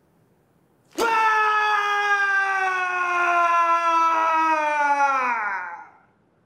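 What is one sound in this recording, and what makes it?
A young man lets out a long, loud, falling yell.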